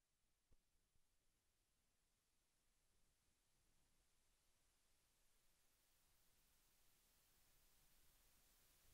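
Camels gallop over sand with soft thudding hooves.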